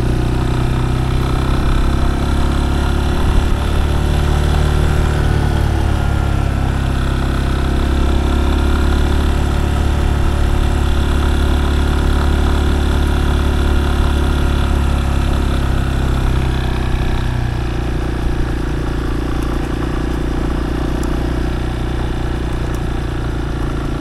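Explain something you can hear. A motorcycle engine hums steadily close by as it rides along.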